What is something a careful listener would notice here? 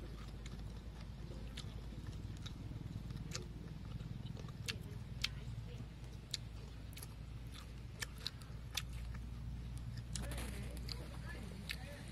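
Small clicks and crunches come from two boys eating with their fingers, up close.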